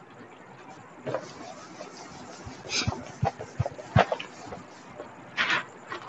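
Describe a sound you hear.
A cloth wipes and rubs across a whiteboard.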